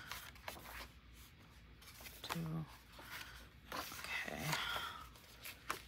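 Paper pages turn and rustle.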